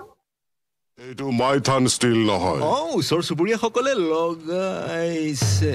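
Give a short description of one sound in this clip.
A man speaks with animation, close up.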